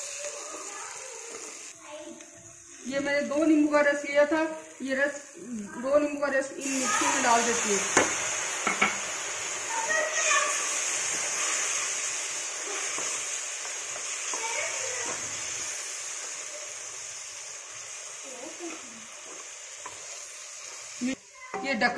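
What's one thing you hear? A wooden spatula scrapes and stirs food in a metal pan.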